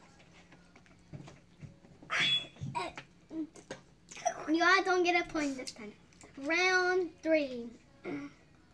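Young children laugh loudly.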